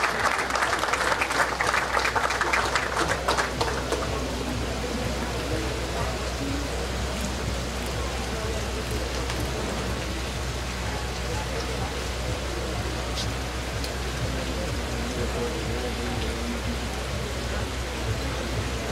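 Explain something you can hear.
Several men talk quietly among themselves, with a crowd murmuring around them outdoors.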